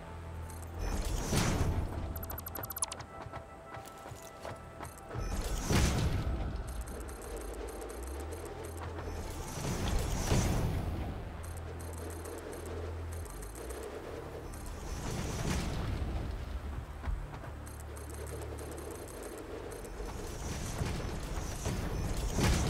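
A building piece snaps into place with a sweeping whoosh, again and again.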